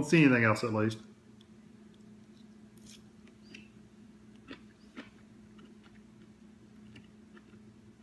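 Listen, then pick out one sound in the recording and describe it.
A man chews food quietly.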